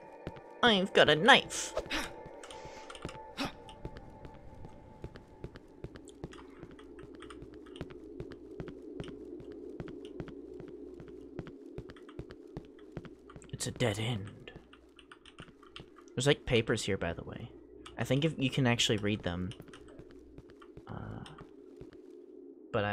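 Footsteps tap on cobblestones.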